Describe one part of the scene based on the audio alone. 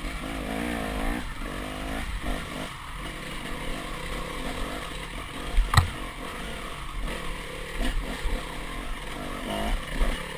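A dirt bike engine revs and roars up close.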